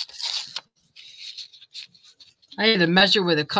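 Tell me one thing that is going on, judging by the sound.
Paper rustles and crinkles under handling.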